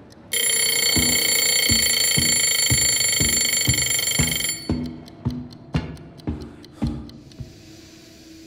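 Footsteps clang on a metal walkway.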